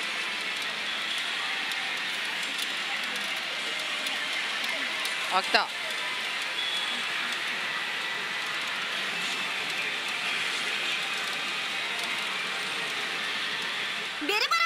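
A loud, steady din of many gaming machines fills a busy hall.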